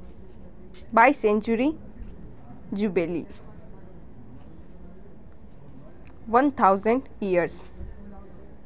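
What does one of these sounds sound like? A young woman speaks calmly in short phrases nearby.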